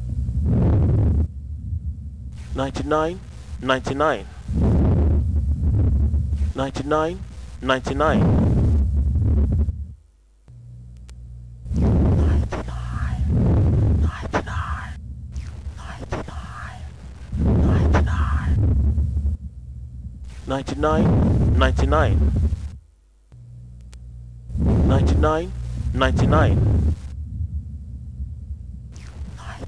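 A man breathes in and out deeply, heard up close through a stethoscope.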